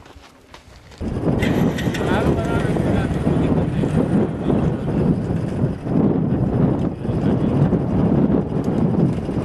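An excavator engine roars loudly and steadily.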